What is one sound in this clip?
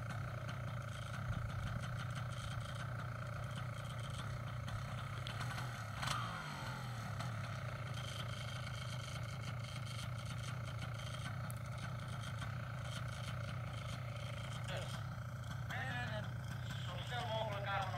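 A paramotor engine idles with a steady drone.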